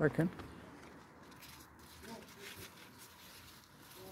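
Leaves rustle softly as a hand brushes through them.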